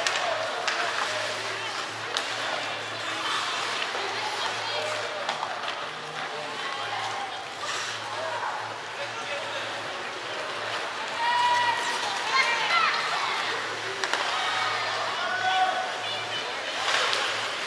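Hockey sticks clack against the puck and each other now and then.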